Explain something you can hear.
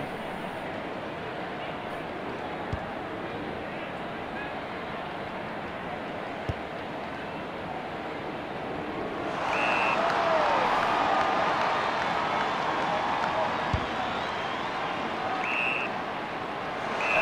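A large stadium crowd roars steadily, swelling louder partway through.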